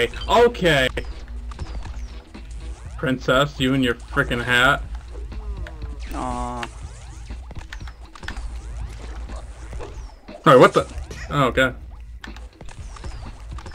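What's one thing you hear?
Short electronic game sound effects chirp.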